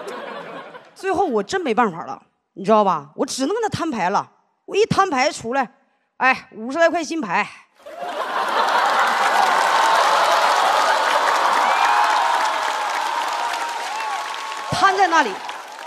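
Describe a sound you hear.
A young woman speaks with animation into a microphone over loudspeakers.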